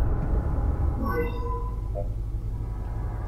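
A soft electronic chime sounds.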